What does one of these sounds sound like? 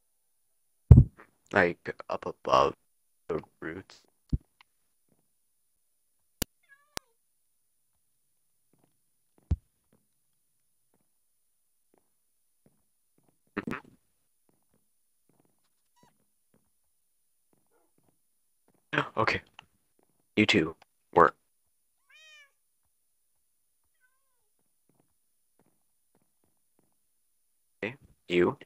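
Small foxes yip and squeak now and then.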